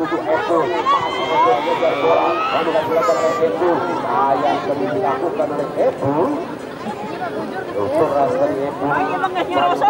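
A crowd of spectators murmurs and calls out nearby, outdoors.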